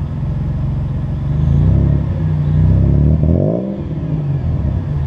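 A vehicle engine revs up briefly a few times.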